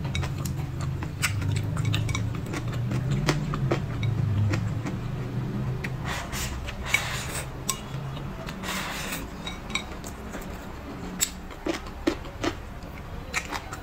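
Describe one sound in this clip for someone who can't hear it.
A young woman chews food with wet, smacking sounds, close by.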